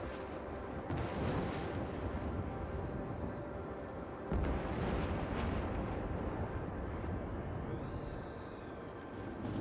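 Thunder cracks and rumbles.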